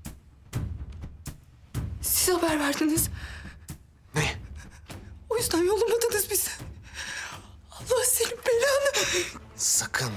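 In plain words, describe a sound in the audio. A young woman speaks tearfully and with distress.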